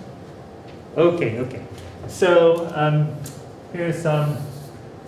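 A man speaks through a mask in a calm, lecturing voice.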